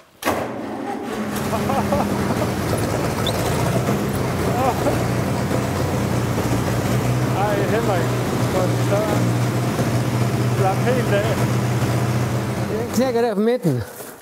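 A tractor engine runs with a steady low rumble.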